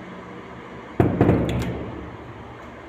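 A metal door latch clanks and the door bangs open, echoing briefly.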